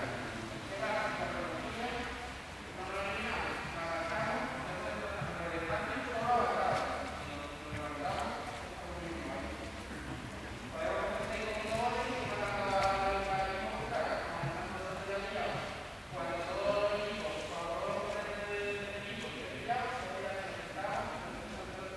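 A group of children talk and call out in a large echoing hall.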